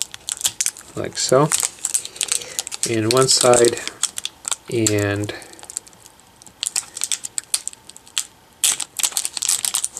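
Plastic film crinkles and rustles between fingers.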